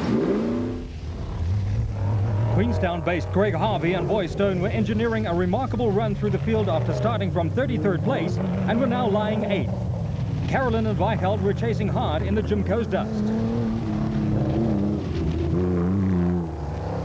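An off-road car's engine revs loudly as it climbs a rough track.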